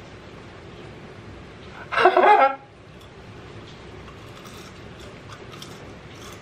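A young man chews crunchy food with his mouth open.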